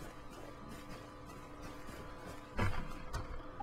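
Footsteps run through rustling undergrowth.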